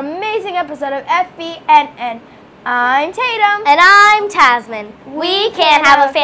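A young girl speaks brightly, close by.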